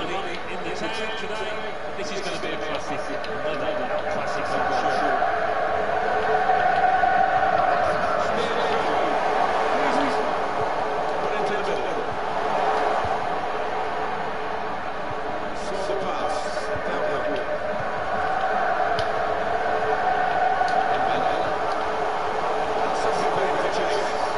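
A large stadium crowd roars steadily, swelling and fading.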